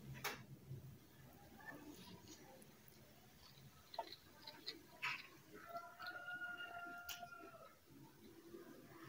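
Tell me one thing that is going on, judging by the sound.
A woman slurps noodles close to a microphone.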